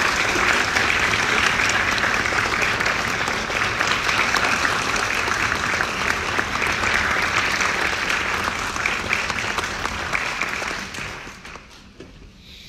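An audience applauds loudly in a large hall, then the applause dies away.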